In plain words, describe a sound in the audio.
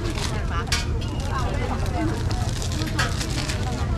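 A plastic bag crinkles close by.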